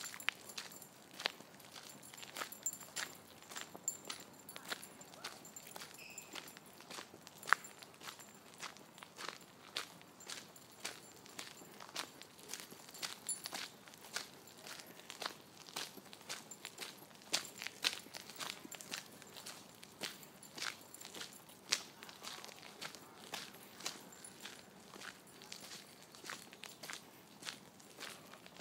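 A dog's paws patter on gravel.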